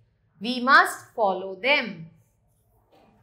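A woman speaks clearly and with animation, close to a microphone.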